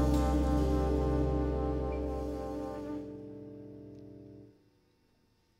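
A live band holds a final loud chord that rings out and fades.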